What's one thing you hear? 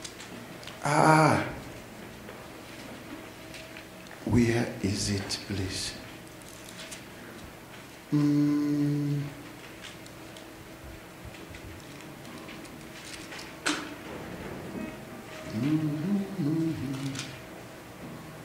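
A man speaks slowly with pauses through a microphone in an echoing room.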